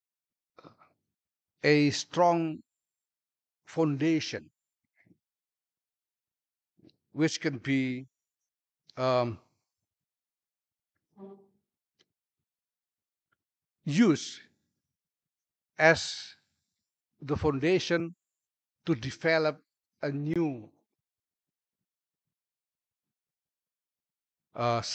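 An adult man speaks calmly into a microphone, heard through a loudspeaker, with long pauses.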